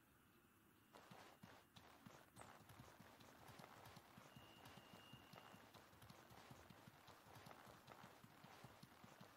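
Footsteps tread on a dirt path.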